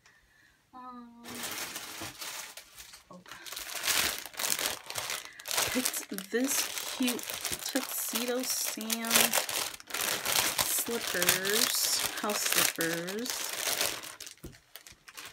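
Plastic wrapping crinkles and rustles loudly.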